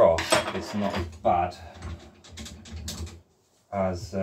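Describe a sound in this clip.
Metal bicycle parts click and rattle.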